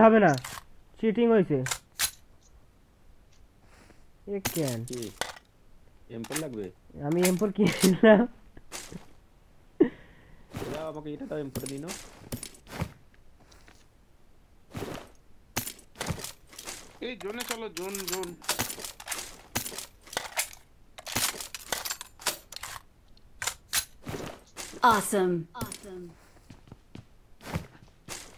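Short clicks and rustles sound as items are picked up.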